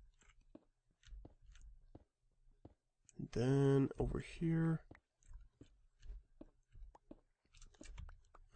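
A pickaxe chips at stone blocks with short knocks.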